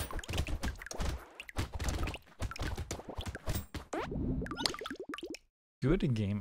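Rapid electronic shooting effects crackle and pop.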